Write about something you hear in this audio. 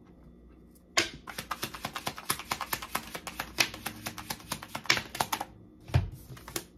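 Fingernails tap rapidly on a small hard object, very close.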